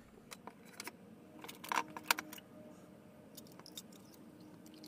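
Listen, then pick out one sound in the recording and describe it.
Small metal parts clink lightly together.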